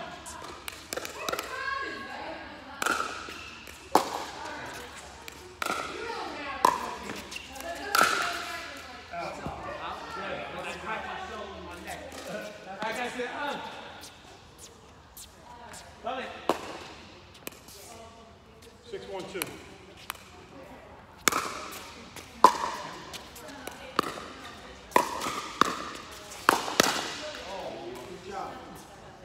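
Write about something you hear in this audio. Paddles smack a plastic ball back and forth in a large echoing hall.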